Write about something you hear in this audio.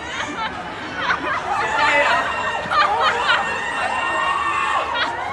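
Young women scream with excitement.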